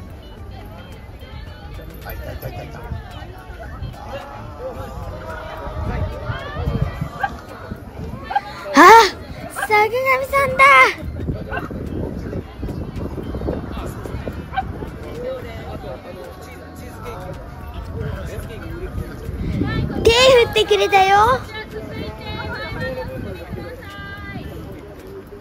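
Several young men and women chat nearby, outdoors.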